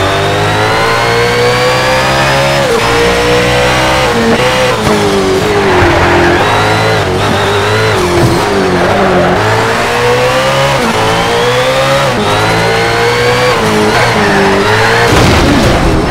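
A racing car engine roars, revving up and dropping with each gear change.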